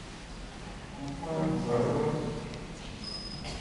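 An elderly man chants in a large, echoing hall.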